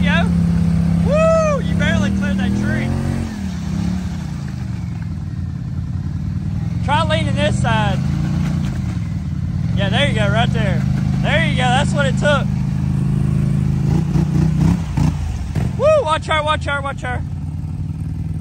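Tyres churn and splash through thick mud.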